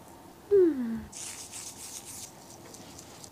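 Fingertips rub foamy lather on skin with a soft squishing.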